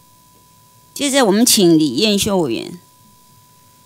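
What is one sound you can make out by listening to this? A woman speaks into a microphone, briefly and with animation.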